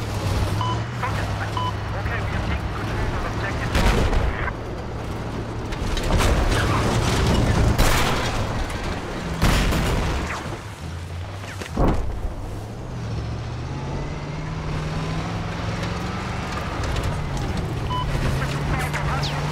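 An engine hums steadily and revs up toward the end.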